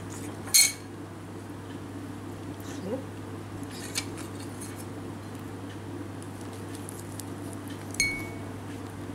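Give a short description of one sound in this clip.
A metal spoon clinks sharply against a ceramic dish.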